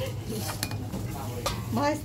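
A spoon scrapes against a metal bowl.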